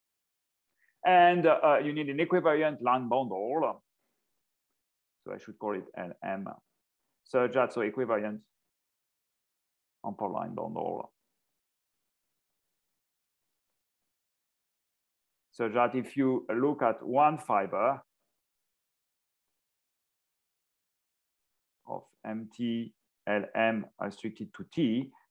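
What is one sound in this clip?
A man speaks calmly in bursts through an online call microphone, with pauses between phrases.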